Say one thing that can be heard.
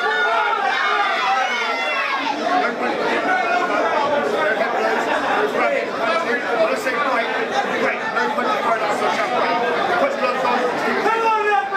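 A man speaks firmly to two others up close.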